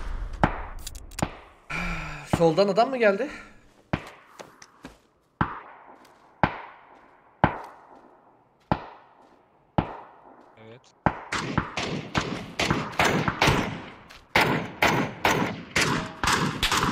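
Gunshots ring out again and again, each with a short echo.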